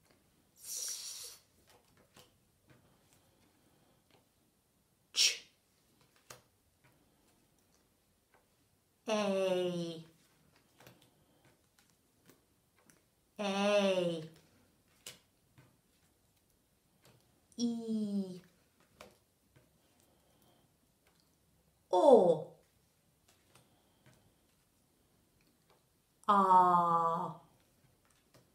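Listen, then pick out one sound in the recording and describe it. A woman speaks short, clear sounds one at a time, close by, with pauses between them.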